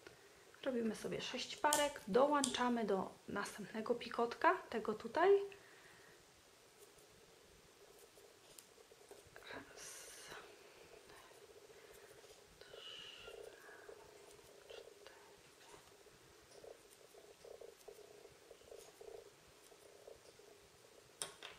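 Fine thread rustles softly as it is pulled through fingers.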